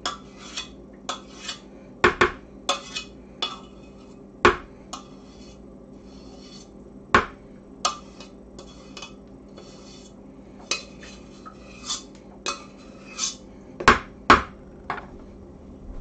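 A spatula scrapes and taps against a metal saucepan.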